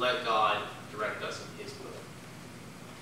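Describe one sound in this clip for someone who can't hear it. A young man speaks calmly into a microphone in an echoing hall.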